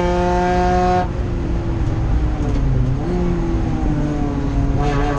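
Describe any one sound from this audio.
A race car engine drops to a lower, quieter drone as the driver eases off.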